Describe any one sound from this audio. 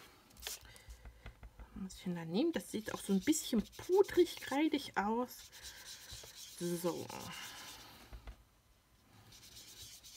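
A foam applicator dabs and rubs softly on paper.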